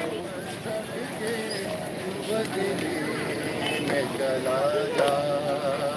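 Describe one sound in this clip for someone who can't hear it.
A man chants loudly in front of a crowd.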